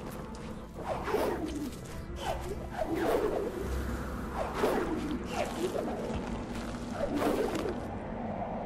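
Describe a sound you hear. Quick whooshing swishes sound as a small creature leaps and climbs.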